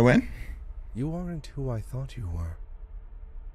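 A man speaks into a microphone with animation.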